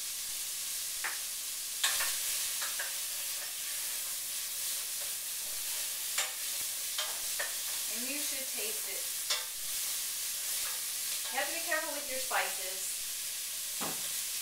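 A metal spoon clinks against a pot.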